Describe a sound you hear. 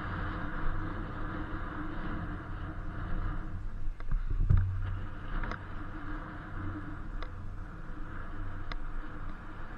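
Wind rushes steadily past a moving rider.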